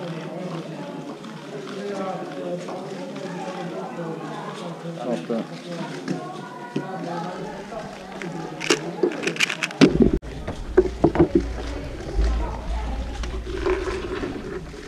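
A small plastic puzzle cube clicks and rattles quickly as it is turned by hand.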